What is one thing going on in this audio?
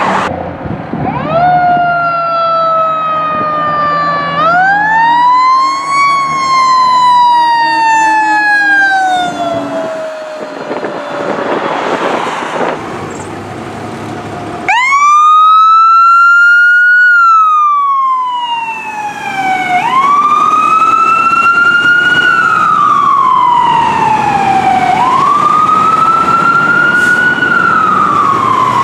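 A fire truck engine rumbles as it drives past.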